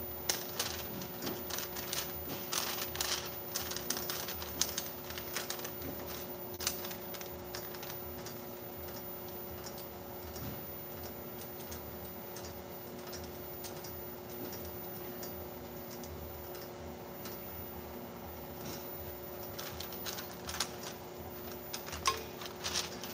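A labelling machine hums steadily.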